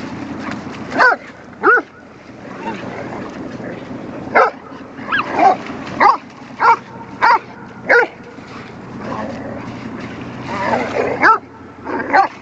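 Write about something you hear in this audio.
A small dog barks sharply again and again.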